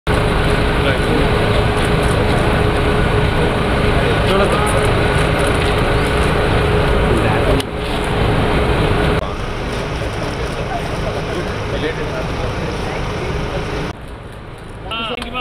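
A noisy crowd chatters loudly outdoors.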